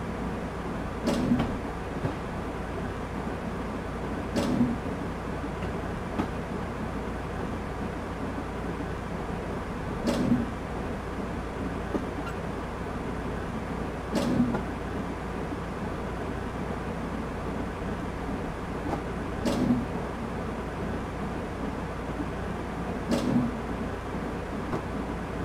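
A train rumbles steadily through a tunnel.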